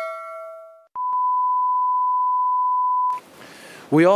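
A steady high beep tone sounds.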